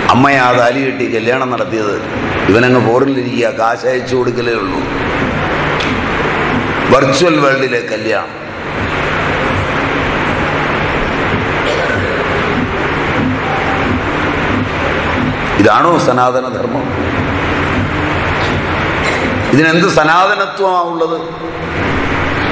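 A middle-aged man speaks calmly and warmly, close by.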